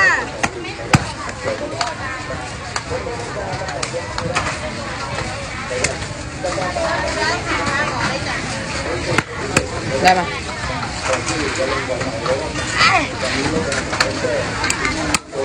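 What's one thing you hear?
Men and women chatter around in a busy outdoor crowd.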